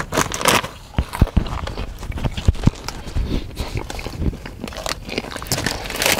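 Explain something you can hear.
A snack bag crinkles and rustles.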